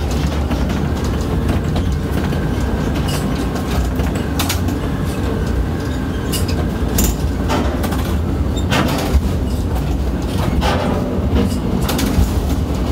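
A crane spreader hums and whirs as it rises between container stacks.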